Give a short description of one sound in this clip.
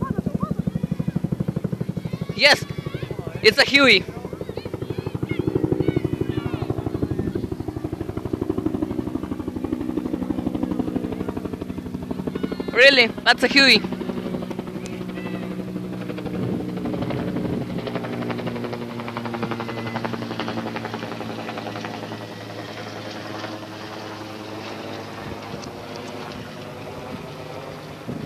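A helicopter's rotor thuds steadily overhead and slowly fades.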